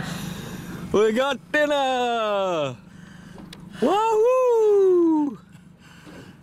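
An older man whoops and laughs excitedly close by.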